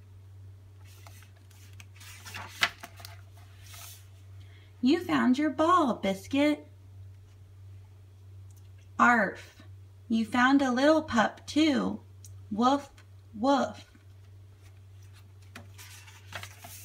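A page of a book rustles as it is turned.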